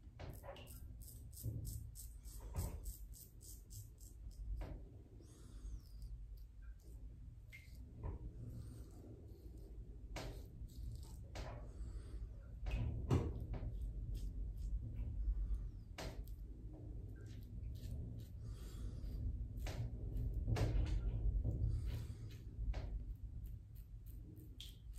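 A razor scrapes through stubble in short strokes, close by.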